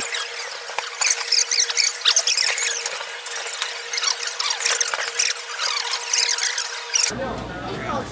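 A knife scrapes and clicks against an oyster shell.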